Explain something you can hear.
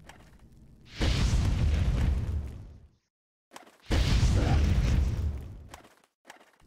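A loud blast roars and rumbles.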